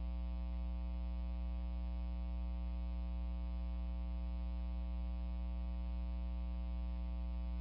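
Computer equipment hums steadily.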